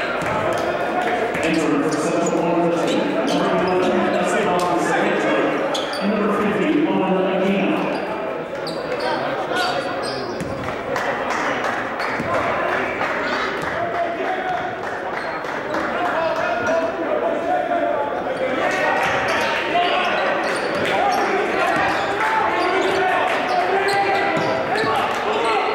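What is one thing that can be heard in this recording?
Sneakers squeak on a court.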